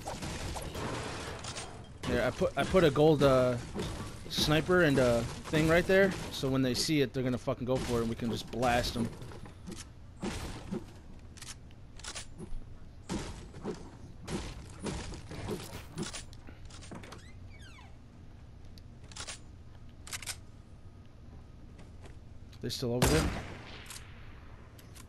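Footsteps thud quickly across a wooden floor.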